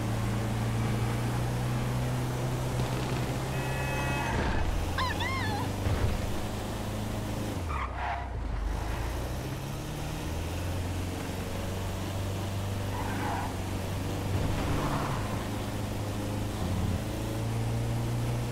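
A van engine hums steadily as it drives along.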